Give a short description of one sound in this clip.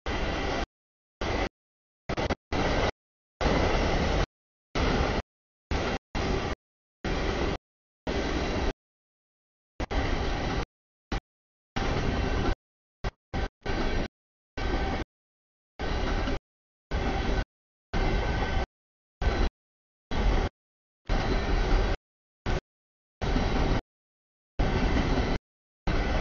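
A freight train rumbles past with clattering wheels.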